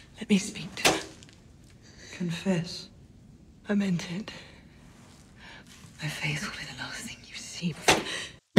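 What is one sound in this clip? A woman speaks in short, quiet phrases close by.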